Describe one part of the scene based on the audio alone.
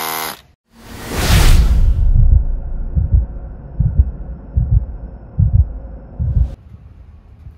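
A hammer drill pounds into pavement with heavy thuds.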